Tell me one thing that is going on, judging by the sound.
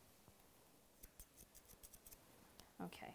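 Scissors snip through fur.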